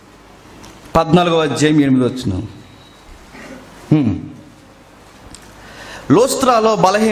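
A young man speaks into a microphone in a slow, measured voice, with pauses.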